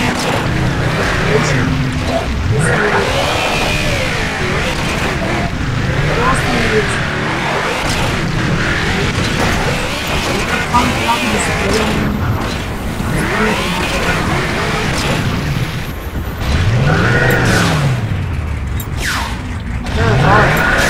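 A vehicle engine roars and revs steadily.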